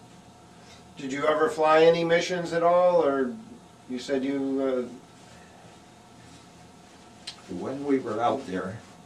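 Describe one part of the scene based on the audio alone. An elderly man speaks quietly and haltingly nearby.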